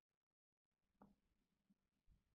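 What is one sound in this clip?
A hand rustles soft knitted fabric.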